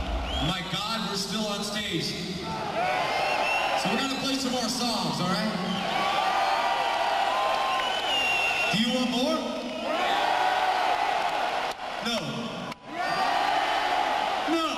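An electric guitar plays through loud amplifiers.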